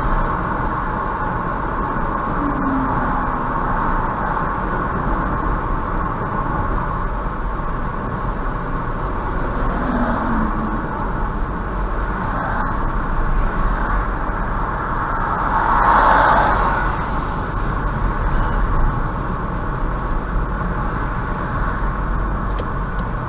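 Tyres roar steadily on a highway from inside a moving car.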